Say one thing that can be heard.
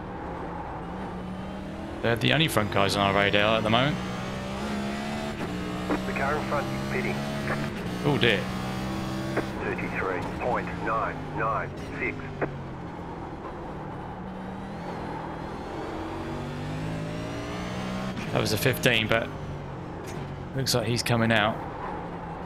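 A race car engine drones and shifts in pitch as it speeds up and slows down.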